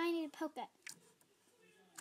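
A finger presses into soft slime.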